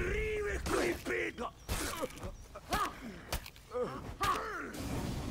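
Metal blades clash with sharp strikes.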